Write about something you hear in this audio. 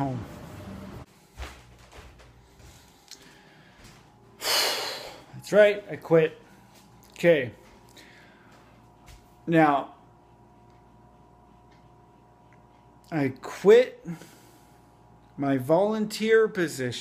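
A man speaks close up, in short animated bursts with pauses.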